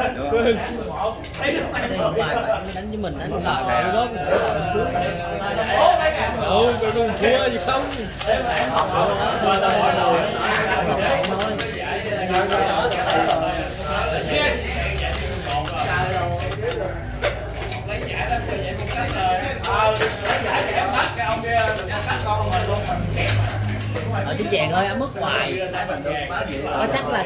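Several men talk nearby in lively, overlapping voices.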